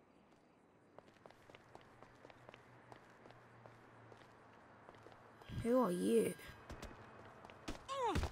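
Footsteps run quickly on hard pavement.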